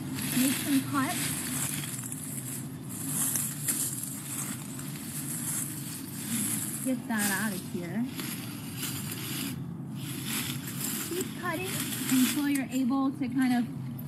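Leaves rustle as branches are handled.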